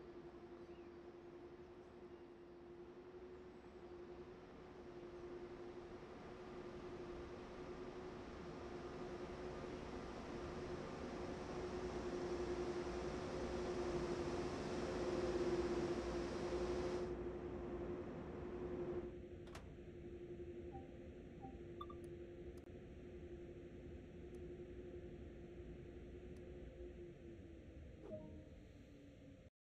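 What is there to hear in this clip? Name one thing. An electric train hums steadily nearby.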